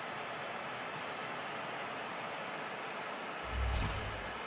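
A large crowd cheers steadily in a stadium.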